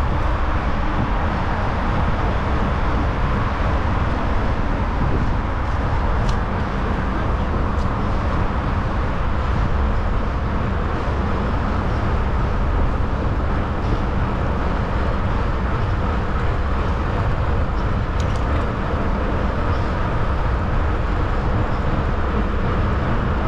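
Wind rushes steadily past a moving bicycle outdoors.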